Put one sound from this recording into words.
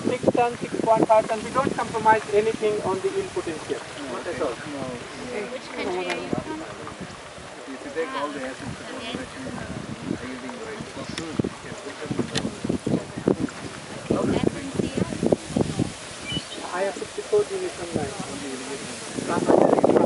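Men talk nearby outdoors in a group.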